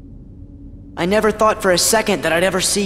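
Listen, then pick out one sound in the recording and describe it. A man speaks slowly in a low, menacing voice.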